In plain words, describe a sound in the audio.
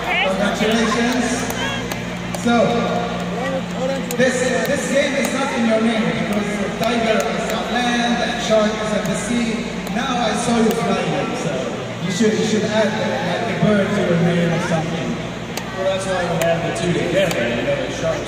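A man speaks with animation through a loudspeaker in a large echoing arena.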